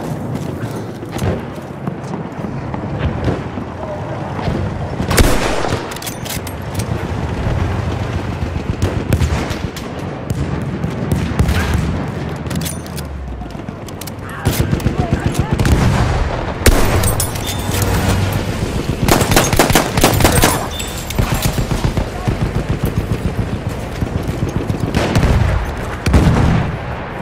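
Gunshots crack and boom with echoes outdoors.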